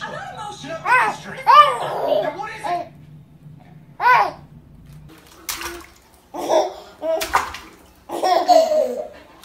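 A baby giggles and squeals with delight close by.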